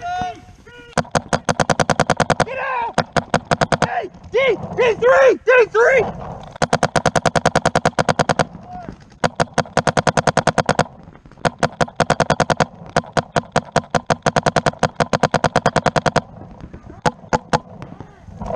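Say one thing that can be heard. A paintball marker fires rapid bursts of sharp pops close by.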